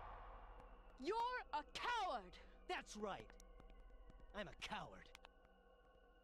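A man shouts loudly with rising and falling pitch.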